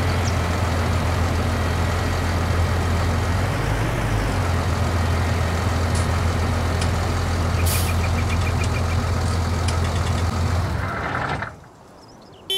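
A tractor engine rumbles loudly and steadily.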